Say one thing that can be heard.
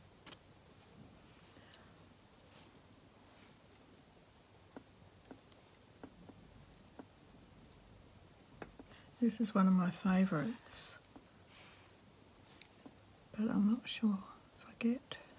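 Fabric rustles softly under handling hands.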